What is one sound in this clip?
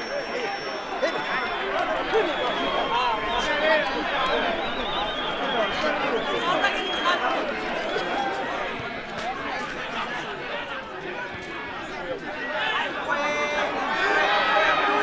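A crowd of spectators cheers and chatters at a distance outdoors.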